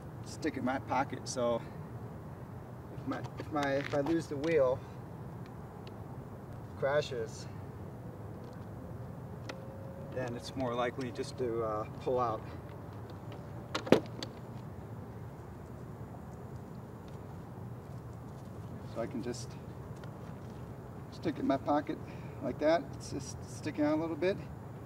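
A man talks calmly close by, outdoors.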